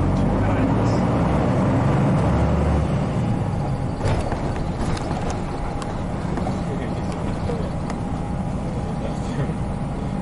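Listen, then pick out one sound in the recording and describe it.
A diesel city bus engine drones, heard from inside as the bus drives.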